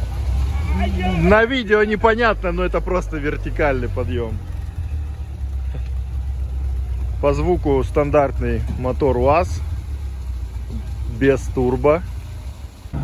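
A man talks loudly nearby outdoors.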